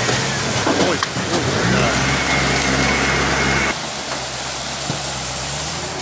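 Water rushes and splashes.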